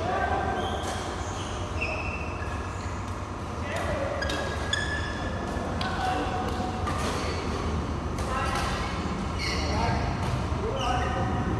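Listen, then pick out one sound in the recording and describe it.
Sports shoes squeak on the court floor.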